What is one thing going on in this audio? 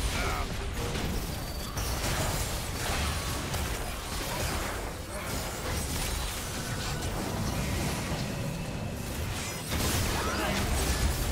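Magic blasts and weapon strikes crackle and boom in a fast video game battle.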